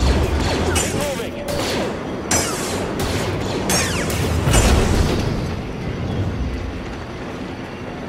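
Blaster bolts fire with sharp zaps.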